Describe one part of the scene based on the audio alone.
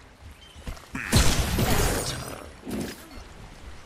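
A loud magical whoosh bursts out and fades.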